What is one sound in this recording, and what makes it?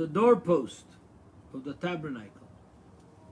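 An elderly man speaks briefly and calmly, close to the microphone.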